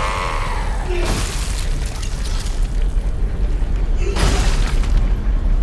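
Heavy boots stomp down hard with a loud crunch.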